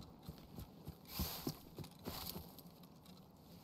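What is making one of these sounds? Leafy bushes rustle as someone pushes through.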